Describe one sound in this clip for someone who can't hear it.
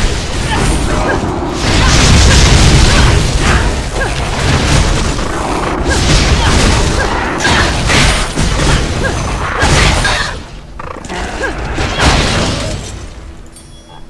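Fiery spells burst and crackle in a fast fight.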